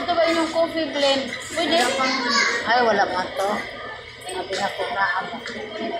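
Men and women chatter nearby in a busy room.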